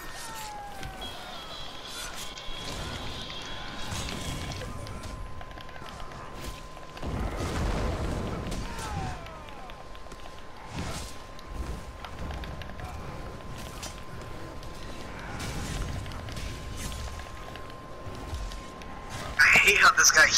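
Weapon blows land with sharp thuds.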